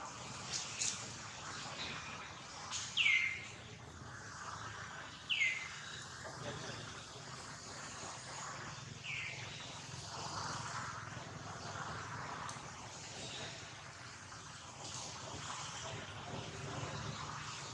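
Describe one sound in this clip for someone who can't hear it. A monkey tears and rustles fibrous fruit husk.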